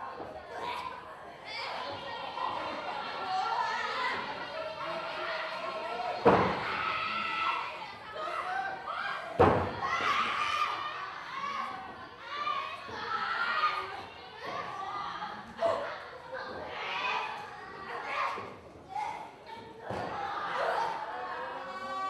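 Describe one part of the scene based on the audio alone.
Young women shout and grunt while wrestling.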